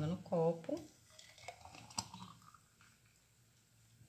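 Juice pours and splashes into a glass.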